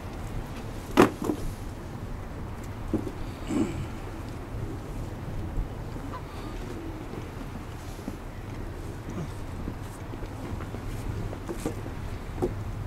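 Small metal clicks and knocks sound as a man handles a wire trap.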